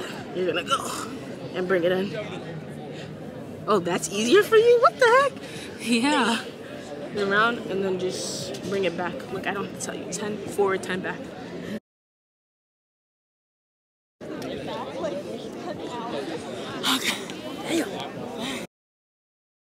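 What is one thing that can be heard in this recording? Young women talk casually close by.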